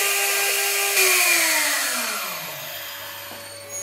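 A milling spindle winds down, its whine falling in pitch.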